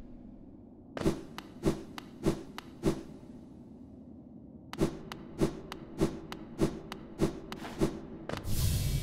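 Light footsteps patter in a steady rhythm.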